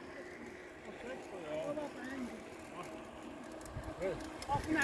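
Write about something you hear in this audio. Children chatter and call out as they ride closer.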